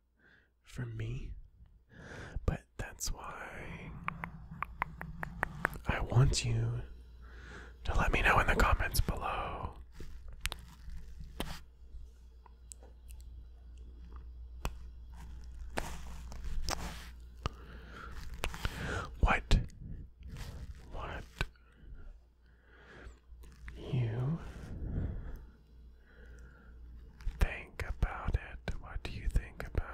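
A young man whispers softly and closely into a microphone.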